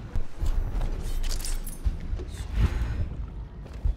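Footsteps thud on stone steps.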